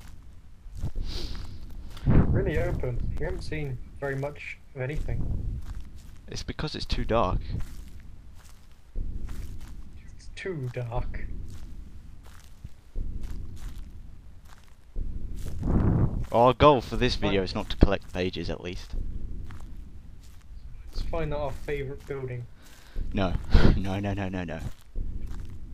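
A young man talks into a headset microphone in bursts, sometimes with animation.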